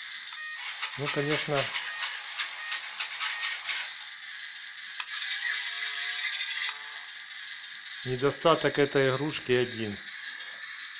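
A toy robot plays loud electronic sound effects as it transforms.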